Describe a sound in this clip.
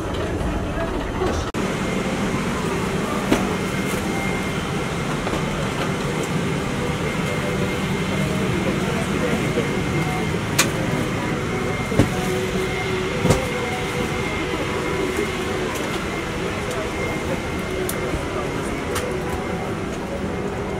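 A steady low cabin hum fills an enclosed space.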